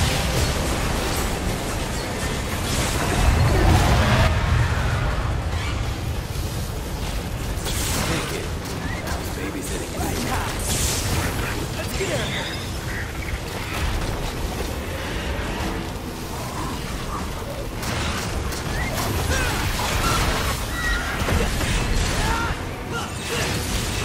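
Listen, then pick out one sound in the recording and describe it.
Loud impacts thud and crash.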